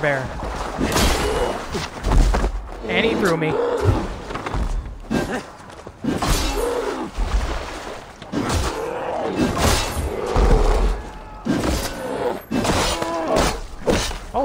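Blades strike with heavy thuds.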